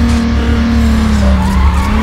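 Tyres screech as a car slides through a turn.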